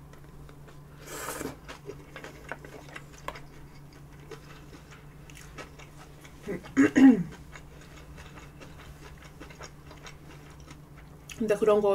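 A young woman chews food noisily, close to a microphone.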